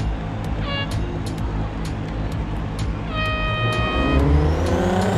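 A race car engine idles and revs loudly.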